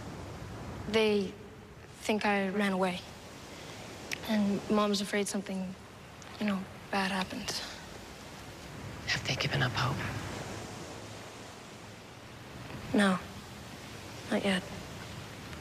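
A teenage boy talks calmly, close by.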